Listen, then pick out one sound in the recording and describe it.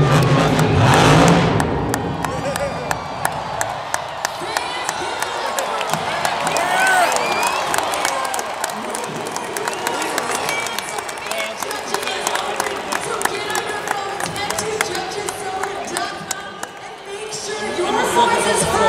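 A large crowd cheers and whistles in a big echoing arena.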